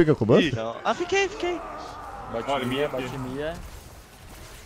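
A young man talks excitedly into a microphone, close by.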